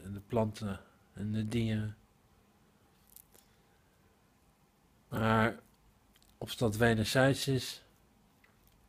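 A middle-aged man speaks close up in short, pained bursts with long pauses.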